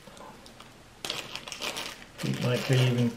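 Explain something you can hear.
A plastic bag crinkles in a man's hands.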